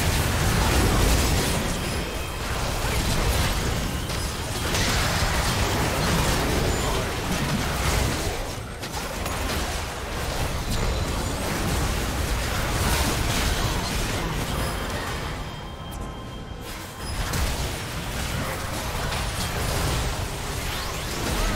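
Magic blasts and crackling spell effects burst one after another in a video game battle.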